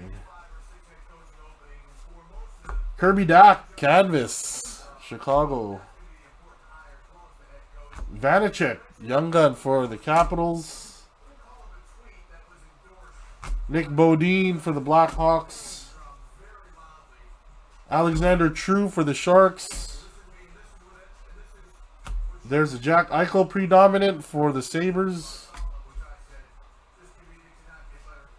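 Cardboard trading cards rustle and slide as hands flip through them.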